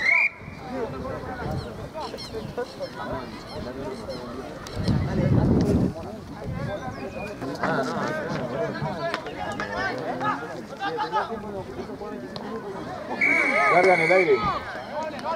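Young men shout and call out nearby outdoors.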